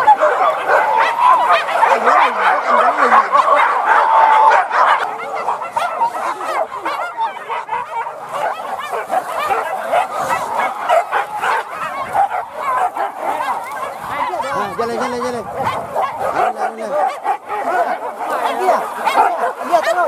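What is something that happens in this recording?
Men shout and call out outdoors.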